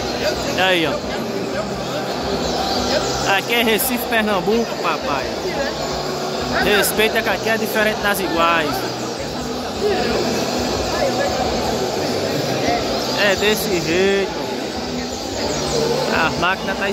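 Many caged birds sing loud, rapid trills.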